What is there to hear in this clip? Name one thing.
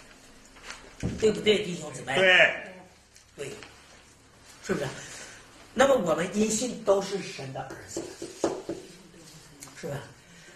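A man lectures with animation, heard close through a microphone.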